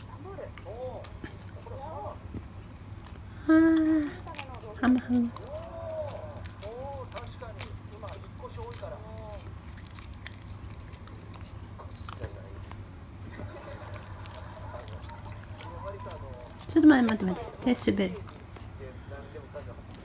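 A dog chews and crunches on a treat up close.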